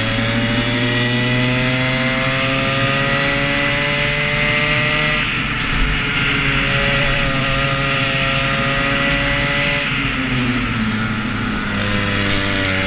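A kart engine buzzes loudly up close, rising in pitch as it speeds up and dropping when it slows.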